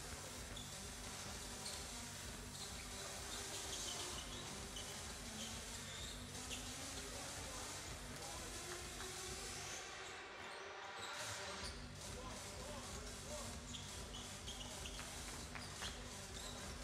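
Basketballs bounce on a hardwood court in a large echoing hall.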